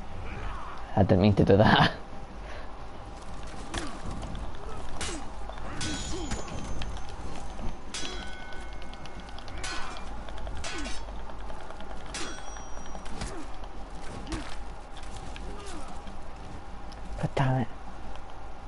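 A warrior grunts and shouts with effort.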